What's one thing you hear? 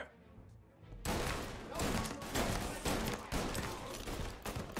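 Gunshots ring out in rapid bursts indoors.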